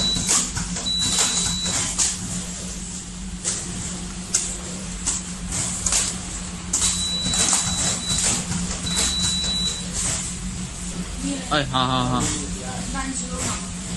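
A conveyor machine hums steadily.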